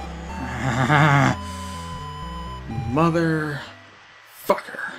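A short electronic tune plays in soft beeping tones.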